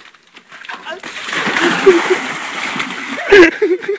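A cyclist crashes and splashes into muddy water.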